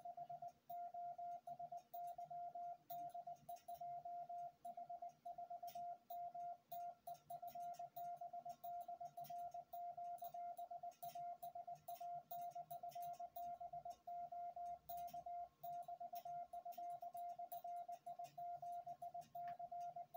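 A telegraph key clicks rapidly under a hand.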